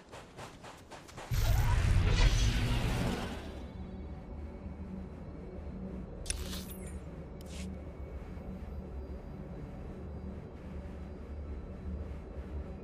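Footsteps run steadily across sand.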